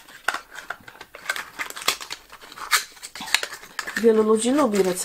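Cardboard packaging rustles and scrapes in a woman's hands.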